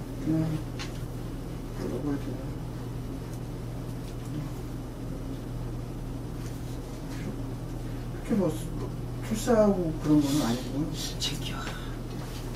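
An elderly man speaks calmly and unhurriedly, close to a microphone.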